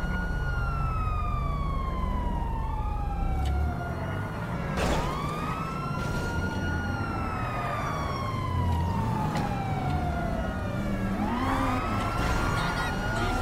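A police siren wails nearby, rising and falling over and over.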